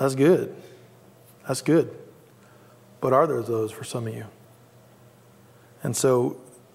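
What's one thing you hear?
A man speaks calmly in short phrases through a microphone.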